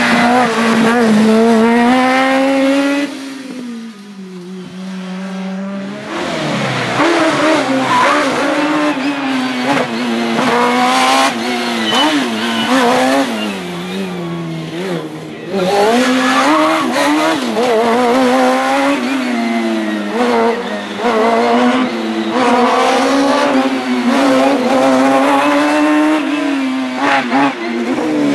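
A racing car engine revs hard and roars up and down through the gears.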